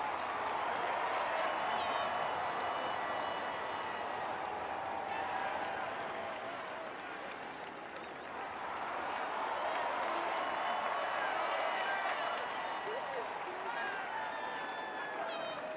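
A large crowd cheers and whistles steadily.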